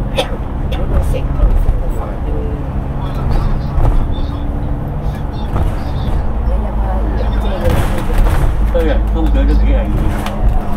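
Traffic rushes past on a busy road.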